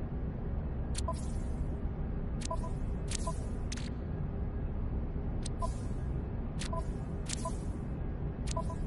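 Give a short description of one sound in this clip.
Soft electronic menu clicks sound again and again, each followed by a brief chime.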